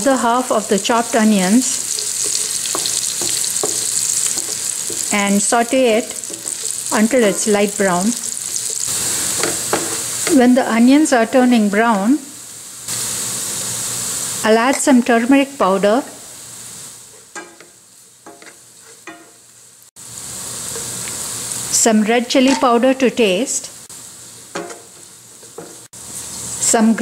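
Onions sizzle and crackle in hot oil in a pan.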